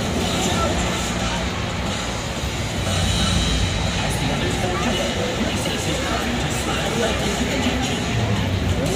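Music booms through loudspeakers in a large echoing hall.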